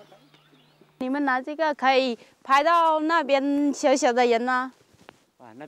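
A young woman speaks close by in a lilting, sing-song voice.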